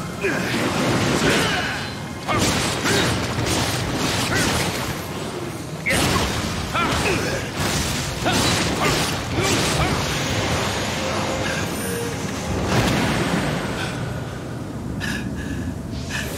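Swords clash and slash in quick bursts.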